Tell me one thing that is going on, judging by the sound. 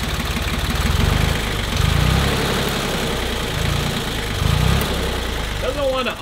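A tractor engine revs up and down in short surges.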